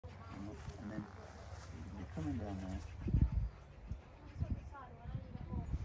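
A man speaks calmly nearby outdoors.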